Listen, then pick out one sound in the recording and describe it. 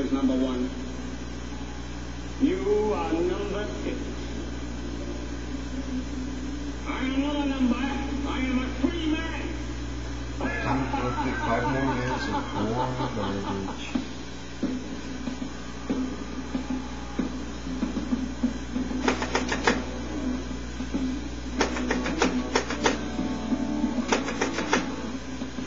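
Rock music with singing plays through a television speaker.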